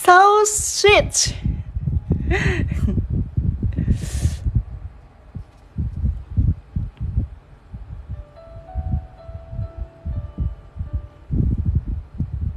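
Hands brush and press against a paper page, rustling softly.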